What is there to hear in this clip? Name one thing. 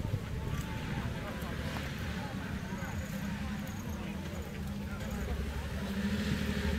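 A crowd of spectators chatters outdoors.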